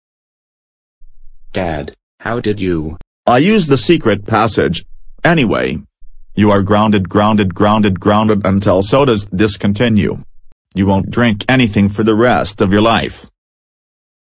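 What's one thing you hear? A man shouts angrily through a synthetic computer voice.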